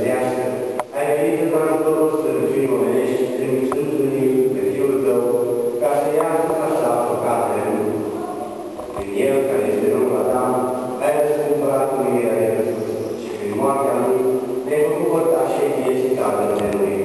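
Several men chant slowly together, echoing through a large hall.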